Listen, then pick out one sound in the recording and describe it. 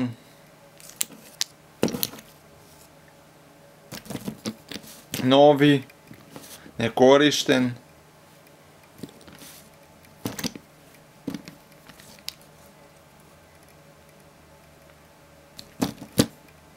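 Wooden parts of a roller massager knock and click as it is handled.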